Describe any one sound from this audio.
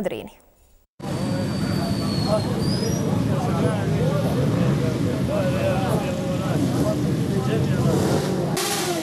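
A crowd of men chatter outdoors.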